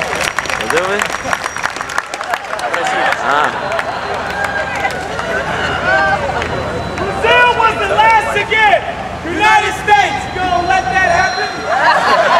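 A man shouts with animation to a crowd outdoors.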